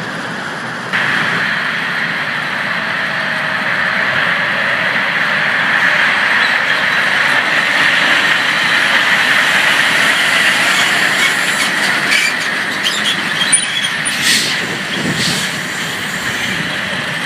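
A heavy truck drives past close by with a rumbling engine.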